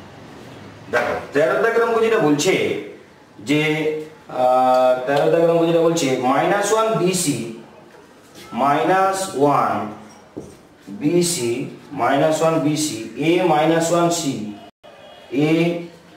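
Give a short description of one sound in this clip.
A man speaks calmly and clearly into a nearby microphone.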